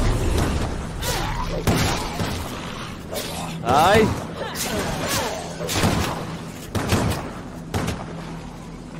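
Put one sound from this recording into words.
Blows and thuds of a video game fight sound in bursts.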